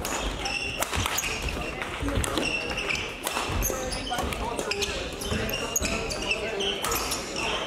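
Sports shoes squeak on a court floor.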